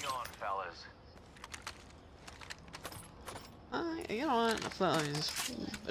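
A gun clicks while it is reloaded.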